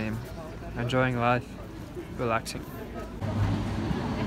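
Voices of a crowd murmur nearby outdoors.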